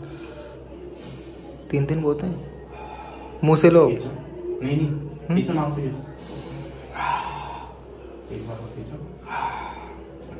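A man sniffs sharply through his nose.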